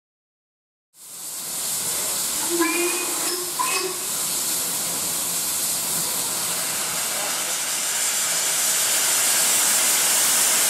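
A steam locomotive hisses loudly as it vents steam.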